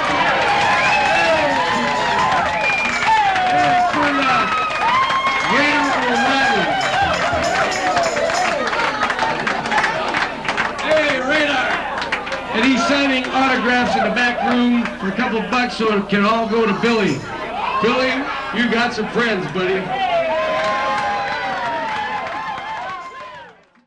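A guitar is strummed.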